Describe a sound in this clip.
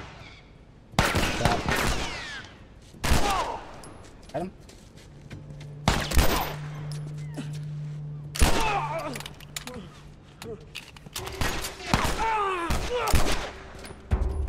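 Pistol shots ring out one at a time, with a sharp echo after each.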